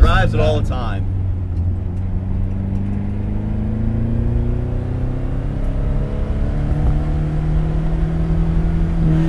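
A car engine hums steadily while driving, heard from inside the cab.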